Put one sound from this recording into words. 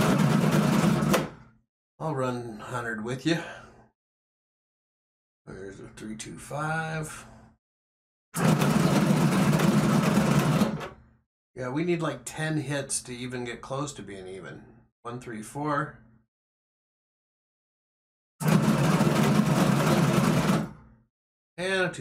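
Dice rattle and tumble across a table.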